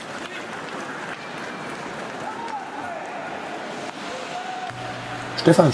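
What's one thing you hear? Hockey sticks clack on the ice.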